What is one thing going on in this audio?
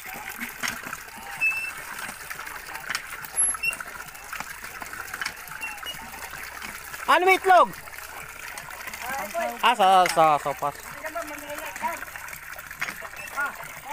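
Water pours from a hand pump into a bucket.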